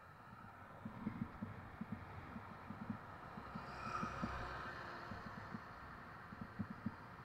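A heavy truck rumbles past on a nearby road.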